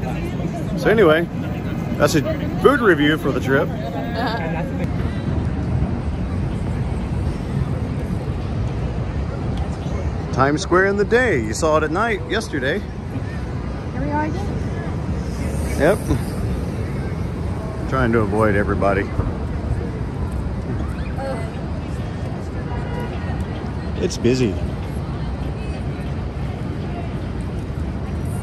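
A busy crowd murmurs and footsteps shuffle outdoors.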